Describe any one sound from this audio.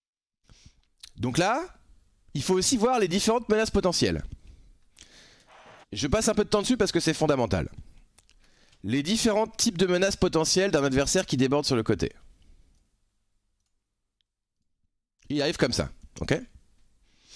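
A man talks with animation into a close microphone, in bursts.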